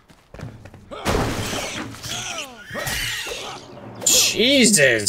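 A sword swishes and strikes a creature.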